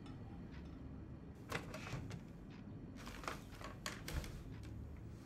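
A wooden chair scrapes across the floor.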